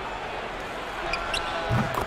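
Sneakers squeak sharply on a court.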